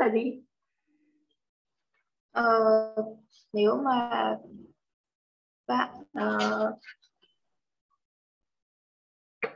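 A woman speaks calmly into a microphone, explaining in short phrases.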